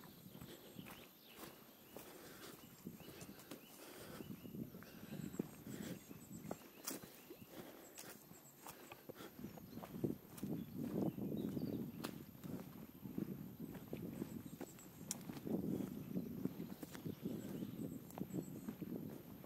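Footsteps crunch and rustle through dry leaves on a path, close by.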